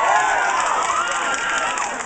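An audience claps along in quick rhythm.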